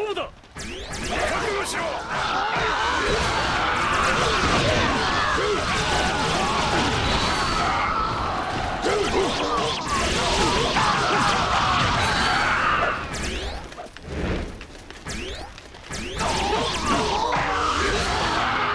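Blades slash and clang repeatedly in a fierce fight.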